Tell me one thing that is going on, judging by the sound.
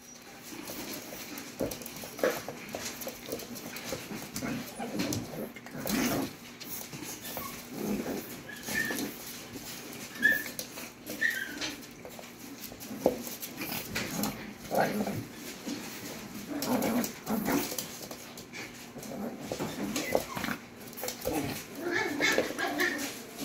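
Two puppies growl and yap playfully as they wrestle.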